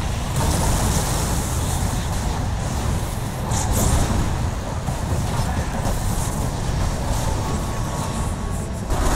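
Magic spells crash and whoosh in a noisy battle.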